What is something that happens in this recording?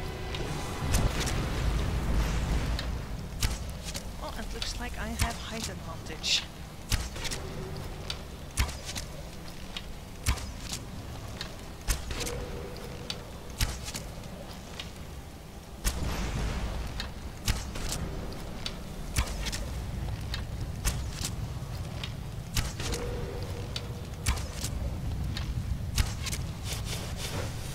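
A bowstring twangs sharply as arrows are loosed, again and again.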